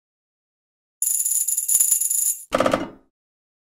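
Bright electronic chimes ring out.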